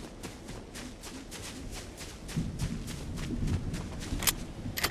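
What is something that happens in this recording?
Footsteps patter quickly across grass.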